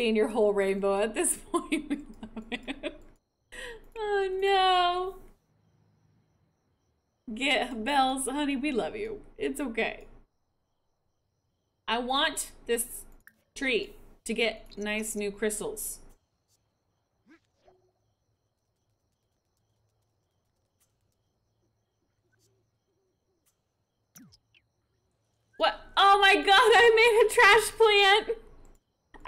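A young woman talks with animation close to a headset microphone, in bursts with pauses.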